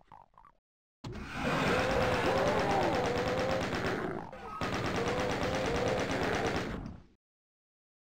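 A rapid machine gun fires in long, loud bursts.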